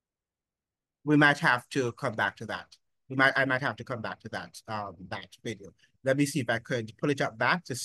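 A middle-aged man talks calmly over an online call.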